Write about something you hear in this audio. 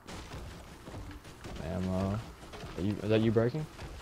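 A pickaxe chops repeatedly into a tree trunk.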